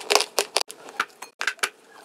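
A young woman bites into soft food with a crisp crunch, close to a microphone.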